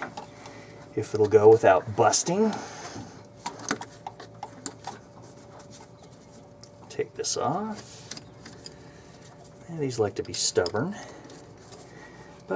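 Metal engine parts click and clink as a hand works on them.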